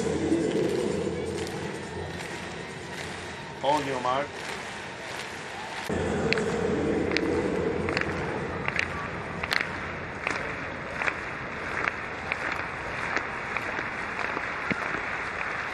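A large crowd murmurs in an open stadium.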